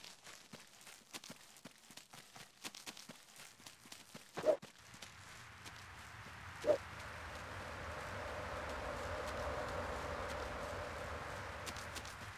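A man's footsteps thud quickly on grass as he runs.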